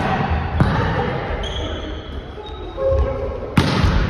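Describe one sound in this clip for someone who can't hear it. Sneakers squeak on the wooden floor.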